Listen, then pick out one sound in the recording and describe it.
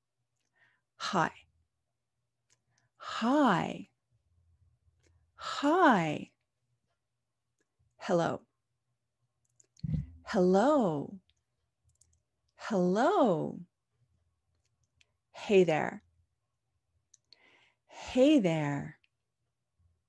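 A woman speaks close to a microphone in short, lively bursts with pauses between them.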